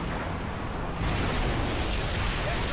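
A loud explosion bursts nearby.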